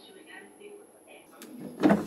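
A washing machine button clicks as it is pressed.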